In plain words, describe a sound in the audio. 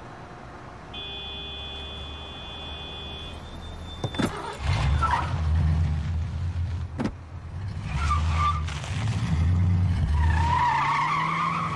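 A car engine starts and roars.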